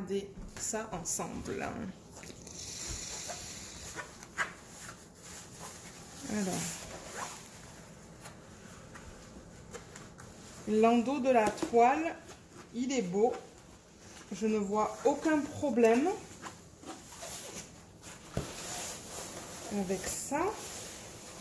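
Paper rustles and crinkles as a roll is unrolled and smoothed by hand.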